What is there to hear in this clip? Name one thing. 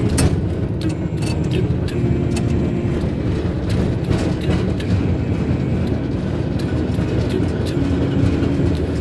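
A gondola cabin rumbles as it travels along its cable.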